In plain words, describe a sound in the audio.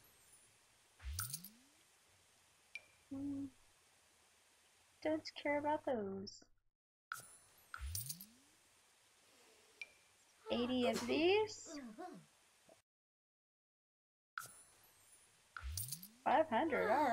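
Short game interface sounds chime and click.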